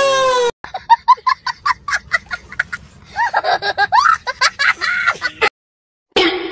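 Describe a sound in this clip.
A young child laughs loudly and shrieks up close.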